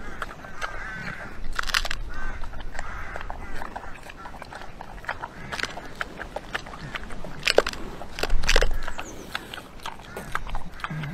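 A pig snuffles and grunts while eating.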